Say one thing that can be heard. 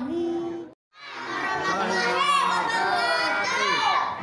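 A teenage boy chants a recitation loudly through a microphone.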